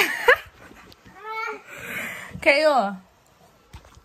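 A young woman talks and laughs close by with animation.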